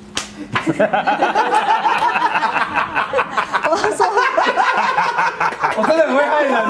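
A group of people laugh and chatter loudly.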